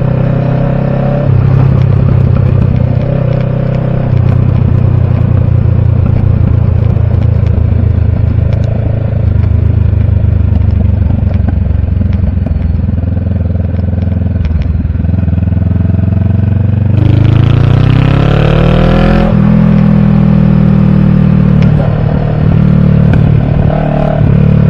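A motorcycle engine hums steadily close by, rising in pitch as it revs and shifts gears.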